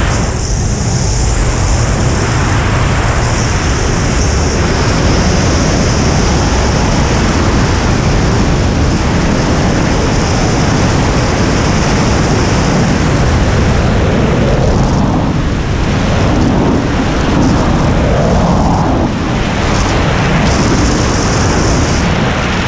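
Strong wind roars and buffets loudly in free fall.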